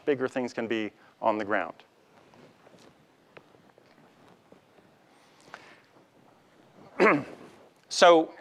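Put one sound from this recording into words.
A man lectures through a microphone in a large hall, pausing between phrases.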